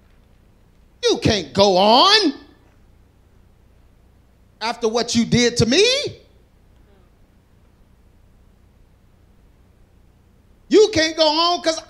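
A man speaks with animation into a microphone in a large hall, in short bursts with pauses.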